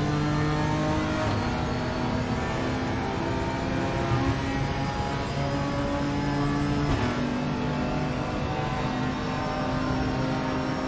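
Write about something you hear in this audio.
A racing car engine roars loudly, its pitch climbing steadily.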